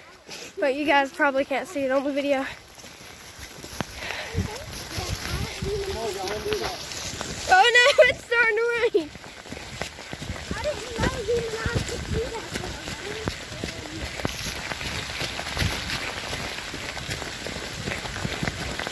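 Boots squelch and crunch on wet mud and leaves.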